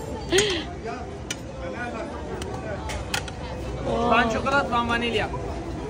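A metal rod clinks against metal tins.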